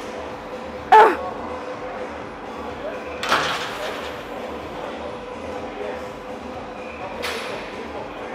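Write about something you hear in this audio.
Weight plates on a machine clank.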